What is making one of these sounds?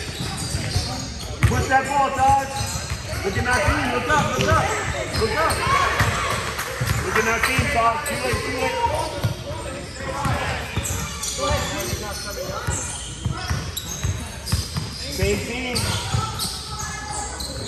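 Sneakers squeak on the court as children run.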